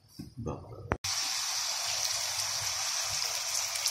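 Egg batter sizzles loudly on a hot pan.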